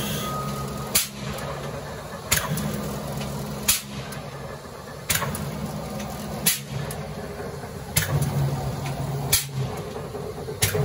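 A large machine hums steadily nearby.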